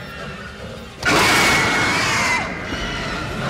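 A creature lets out a loud, sudden shrieking scream.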